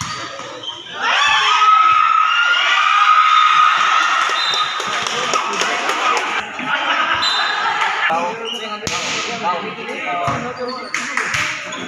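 Children shout and cheer loudly in an echoing covered court.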